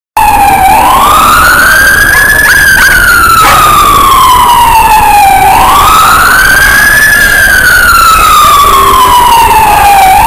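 A siren wails loudly and close by, slowly rising and falling.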